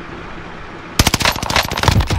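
A rifle fires a sharp shot.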